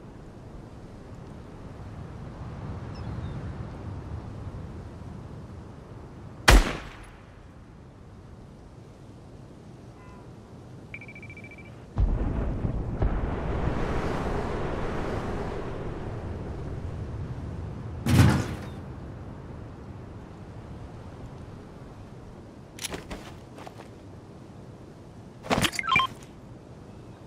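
Footsteps rustle through dense leafy bushes.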